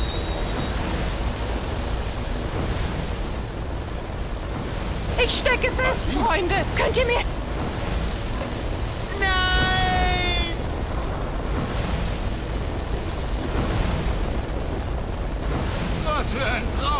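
Heavy machinery hums and rumbles steadily.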